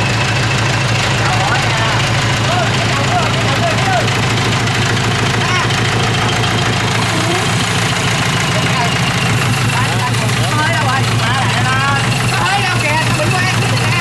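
A man talks loudly over the engine noise.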